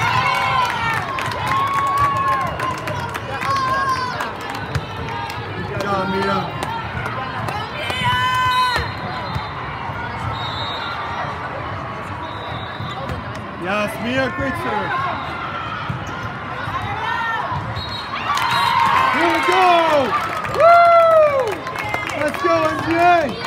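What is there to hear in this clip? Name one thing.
Teenage girls cheer and shout excitedly in a large echoing hall.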